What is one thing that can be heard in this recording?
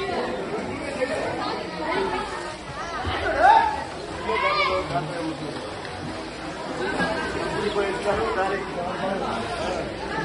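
Bathers splash in water.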